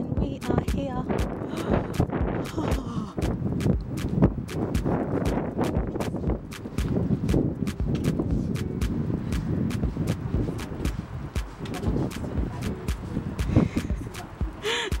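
Footsteps tap steadily on a paved path outdoors.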